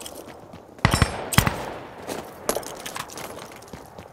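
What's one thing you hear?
Shells click as they are loaded into a shotgun.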